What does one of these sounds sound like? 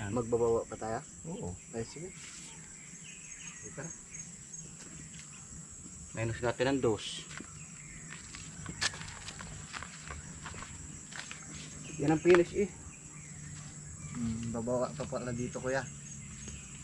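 Men talk loudly in short bursts, close by.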